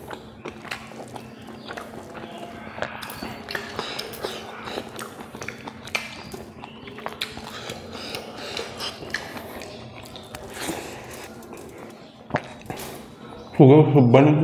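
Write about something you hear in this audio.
A young man chews food wetly and smacks his lips close to a microphone.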